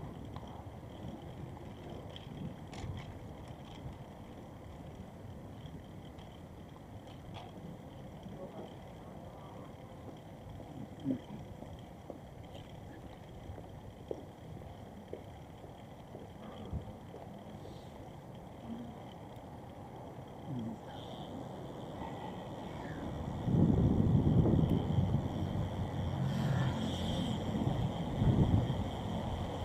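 A light wind rumbles outdoors.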